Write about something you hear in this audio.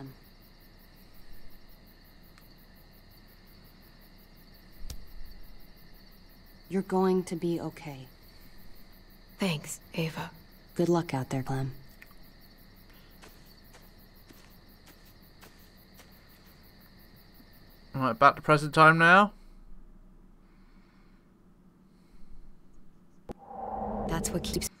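A young woman speaks softly close to a microphone.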